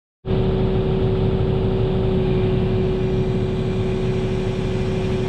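A diesel excavator engine rumbles and hums steadily close by.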